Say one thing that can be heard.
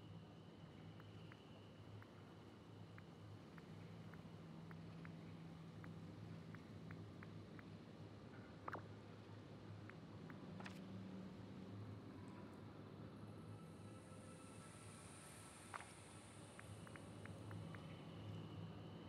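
Soft interface ticks click quickly as a menu scrolls.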